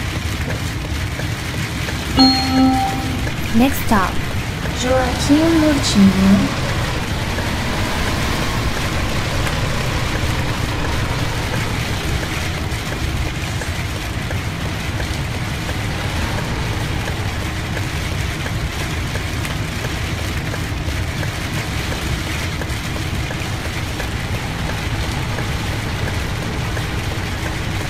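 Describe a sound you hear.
A bus engine hums steadily as the bus drives slowly.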